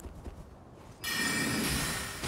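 A magic spell bursts with a loud rushing whoosh.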